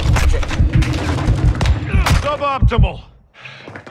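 Gunshots crack rapidly and loudly.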